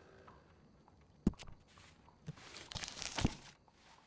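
A page of a catalogue flips over.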